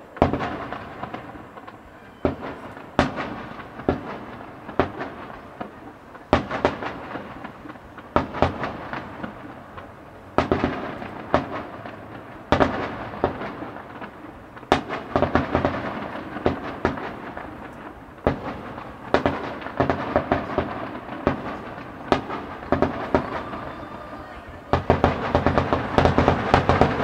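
Fireworks boom and bang in the sky, one after another.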